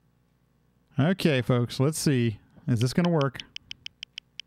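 A man speaks casually into a close microphone.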